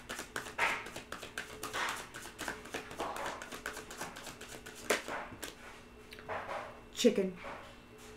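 Cards rustle and tap close by.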